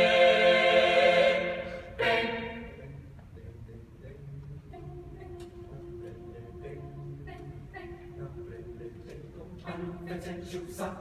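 A choir sings in harmony in a large echoing hall, loudly at first and then softly.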